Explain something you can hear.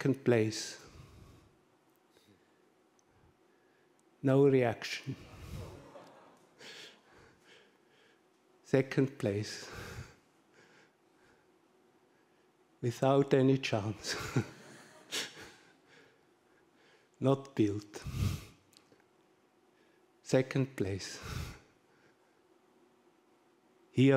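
A man speaks in short bursts through a microphone in an echoing hall.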